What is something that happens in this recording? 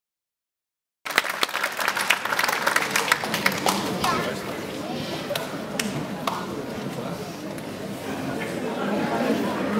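A wind band plays in a large hall.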